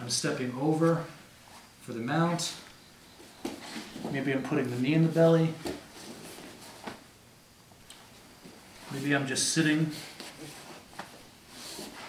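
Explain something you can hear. Bodies shift and rustle on a padded mat.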